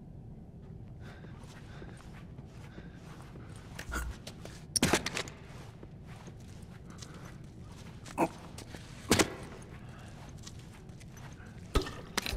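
Footsteps shuffle softly as a man crouches and moves.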